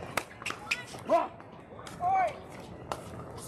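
Shoes squeak on a hard court.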